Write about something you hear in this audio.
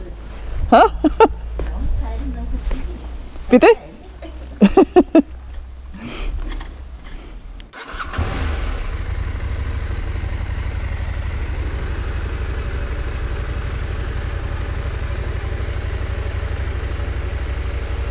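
A motorcycle engine idles with a steady low rumble close by.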